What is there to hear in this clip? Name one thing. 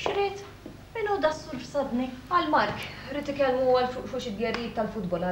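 A middle-aged woman speaks nearby.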